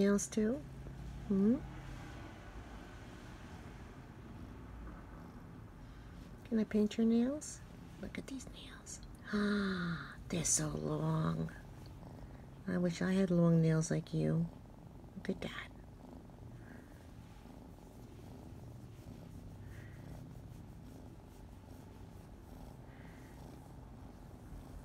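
A hand strokes a cat's fur with a soft rustle.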